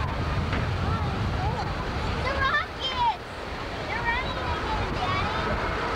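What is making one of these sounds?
A waterfall pours into a pool.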